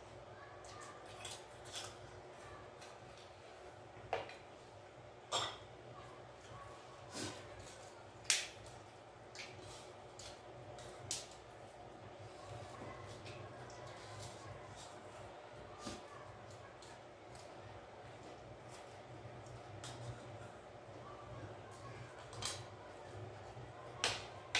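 Cutlery and hands clink and tap against plates.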